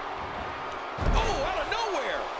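A heavy body thuds onto a wrestling mat.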